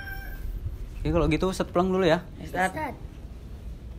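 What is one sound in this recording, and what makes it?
A boy speaks brightly nearby.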